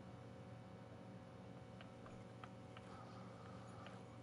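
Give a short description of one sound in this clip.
A fishing reel clicks softly as line is wound in.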